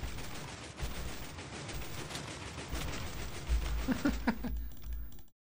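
TNT blocks explode in a burst of rumbling blasts in a video game.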